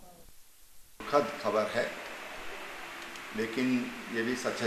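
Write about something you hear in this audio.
A middle-aged man speaks calmly into a microphone close by.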